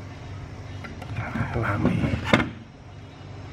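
A circuit board clatters as it is set down on a hard surface.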